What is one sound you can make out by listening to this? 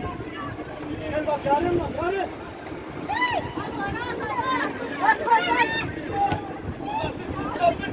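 Young women shout to each other across an open outdoor field.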